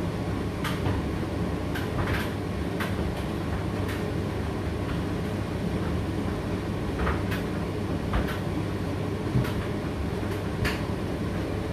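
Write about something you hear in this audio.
Something hard knocks now and then inside a turning tumble dryer drum.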